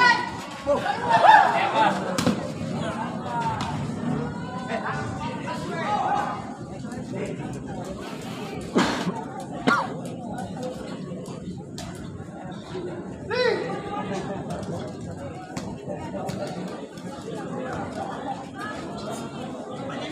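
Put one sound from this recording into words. A football thuds as players kick it.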